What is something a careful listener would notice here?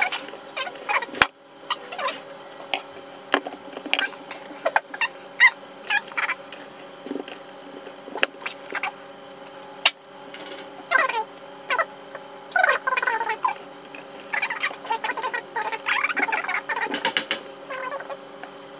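Fingers press and rub a fish fillet into a dry, gritty crumb coating.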